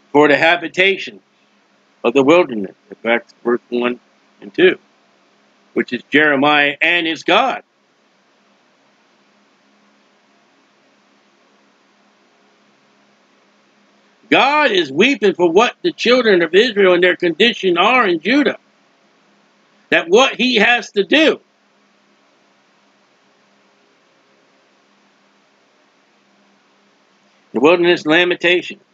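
A middle-aged man speaks calmly into a close microphone, in bursts with long pauses.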